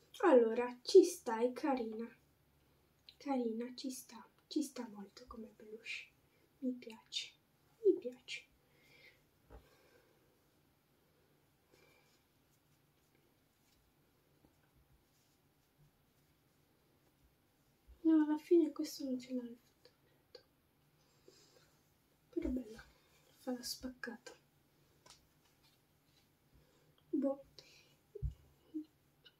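A girl talks close by, calmly and in bursts with pauses.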